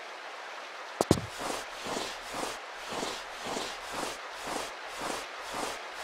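Knees and hands shuffle and scrape as someone crawls through a narrow tunnel.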